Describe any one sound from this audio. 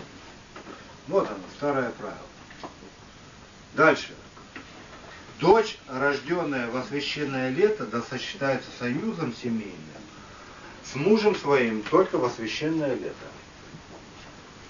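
A man reads aloud from a book in a calm, steady voice.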